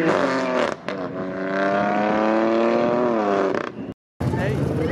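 A car engine roars loudly as it accelerates past.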